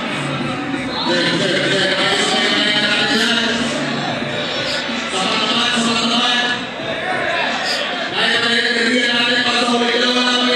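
A young man raps with animation into a microphone over loudspeakers.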